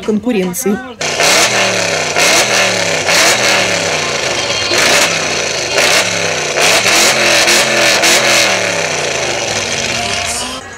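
A powerful car engine revs up loudly again and again.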